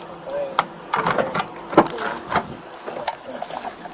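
A car door opens with a metallic click.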